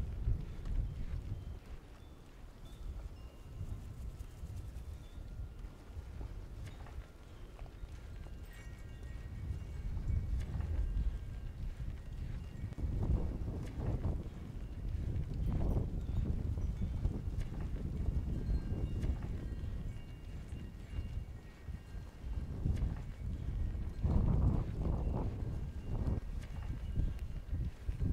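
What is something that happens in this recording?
Wind rumbles across an open hillside.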